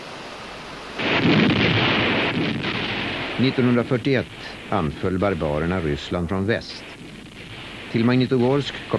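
Artillery guns fire with heavy booms.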